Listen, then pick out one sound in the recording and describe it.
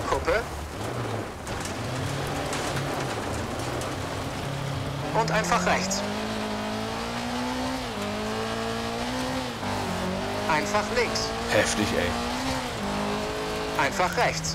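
A rally car engine revs and roars, rising and falling in pitch.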